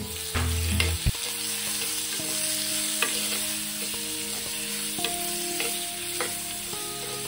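A metal spoon scrapes and clinks against a clay pot.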